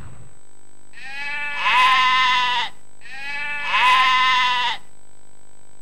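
A goat bleats loudly twice.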